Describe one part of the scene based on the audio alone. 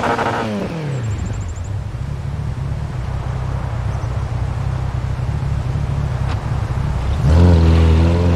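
A car's engine idles with a rough, low rumble.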